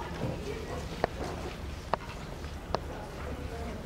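Papers rustle and tap as a woman handles a folder.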